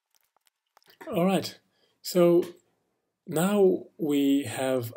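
A man speaks calmly into a microphone, in short phrases.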